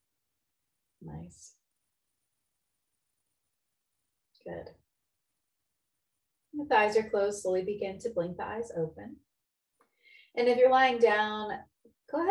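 A woman speaks calmly and clearly close to a microphone, with short pauses.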